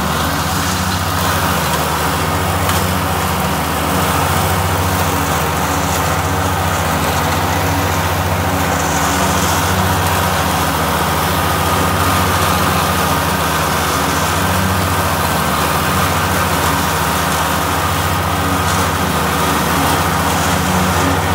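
A mower blade whirs, cutting through grass.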